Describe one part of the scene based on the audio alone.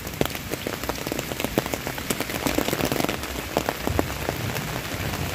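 Large raindrops patter and drip close by.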